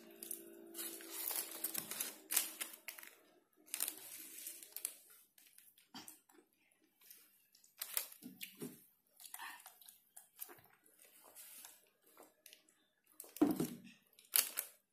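Crispy fried chicken crackles and crunches as hands tear it apart up close.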